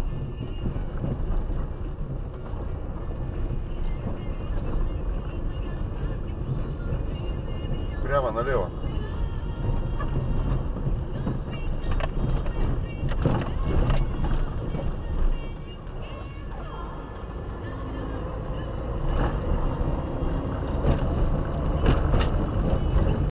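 A car engine hums steadily from inside the cabin.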